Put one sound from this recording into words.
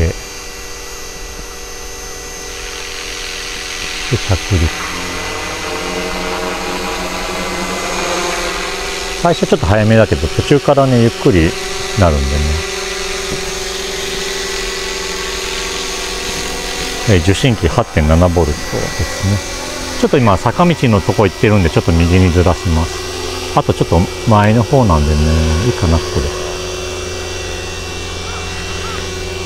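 A model helicopter's rotor whirs steadily overhead.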